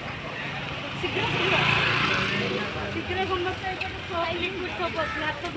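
Women chatter close by as a group walks past.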